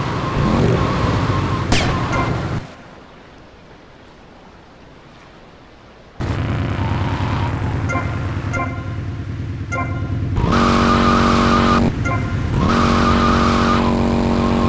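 A motorbike engine hums and revs.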